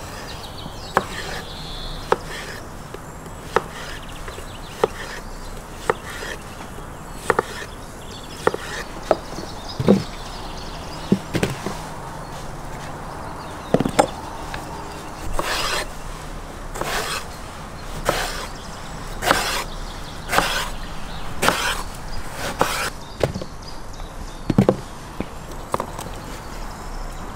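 A knife chops through vegetables on a wooden board with sharp knocks.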